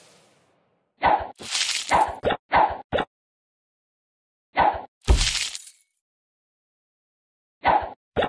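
Bubbles pop and burst in quick bright crackles.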